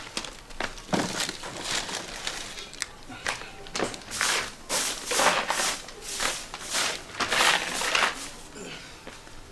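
A broom sweeps a hard floor with rhythmic brushing strokes.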